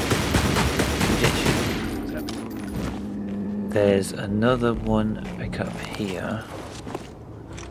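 Footsteps crunch through snow at a run.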